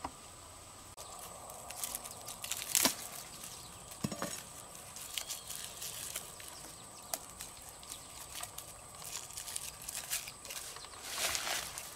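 Plastic string rustles and crinkles close by as it is pulled and tied.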